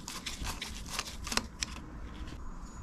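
A screwdriver scrapes and clicks against a small metal part.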